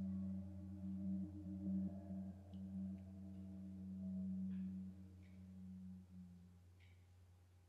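A violin plays a low, sustained note that slowly fades.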